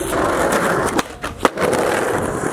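A skateboard snaps against the ground and clacks as it lands.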